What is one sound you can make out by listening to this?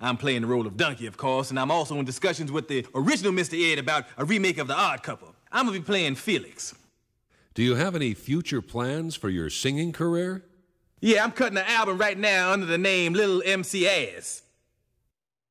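A man speaks in a lively, animated cartoon voice, close to the microphone.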